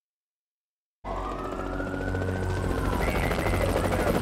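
A police siren wails nearby.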